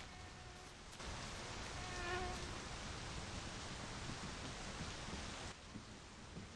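Rain patters steadily outdoors, then cuts off.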